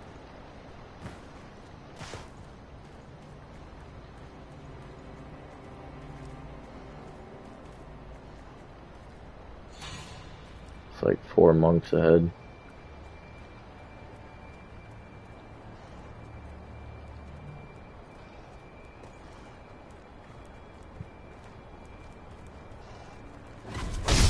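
Footsteps crunch over dry leaves and grass.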